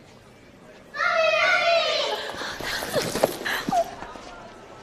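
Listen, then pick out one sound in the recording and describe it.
A woman cries out in delight.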